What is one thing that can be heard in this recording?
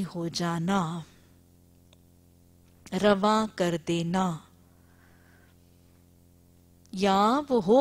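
A woman speaks slowly and clearly into a microphone, in short phrases with pauses.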